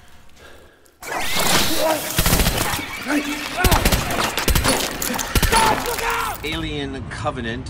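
A gun fires in loud rapid bursts.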